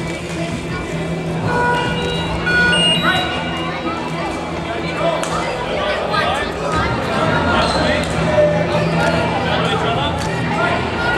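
A crowd of children and adults chatter in a large echoing hall.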